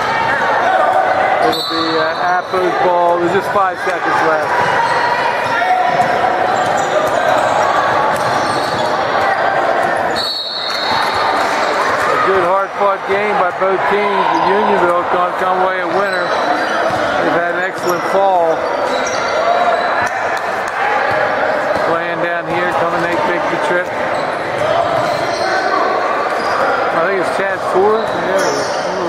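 Young men call out and talk in a large echoing hall.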